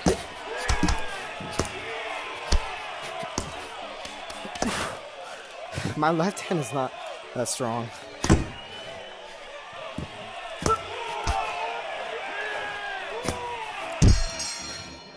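Boxing gloves thud against a body in sharp, repeated punches.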